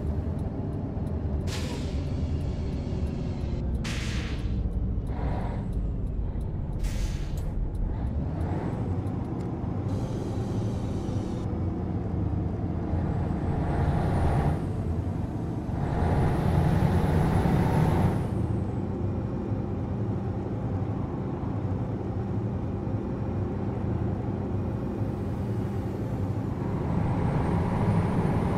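A truck engine drones steadily at speed.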